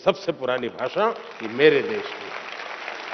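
An elderly man speaks with emphasis into a microphone.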